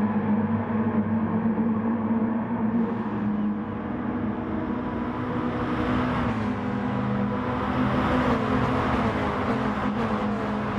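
Several racing car engines whine as a pack of cars races close together.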